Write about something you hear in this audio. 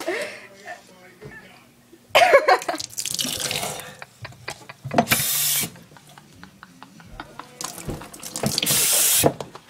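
A young girl slurps a drink from a cup.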